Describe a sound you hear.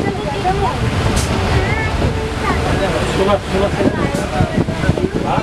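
Wind blows outdoors, rumbling and buffeting.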